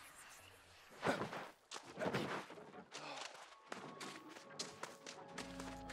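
A sword swishes through the air in quick swings.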